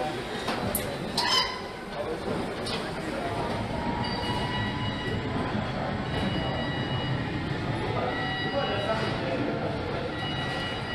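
Machinery hums and clanks steadily in a large echoing hall.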